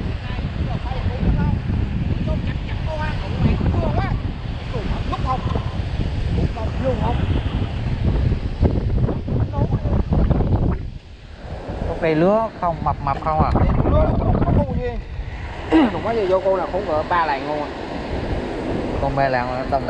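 A man talks nearby in a casual way.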